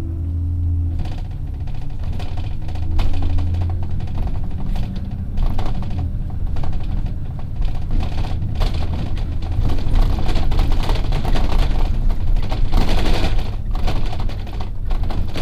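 Wind and road noise rush past a moving vehicle, growing louder.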